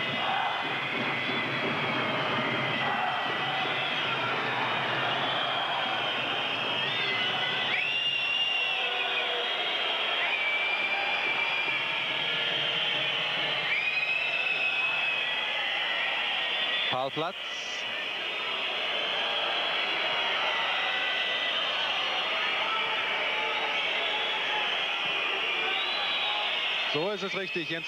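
A large stadium crowd roars and chants steadily outdoors.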